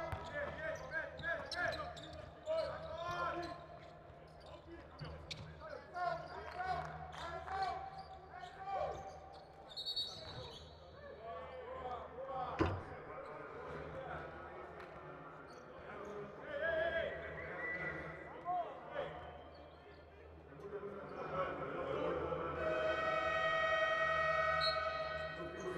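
A large indoor crowd murmurs in an echoing arena.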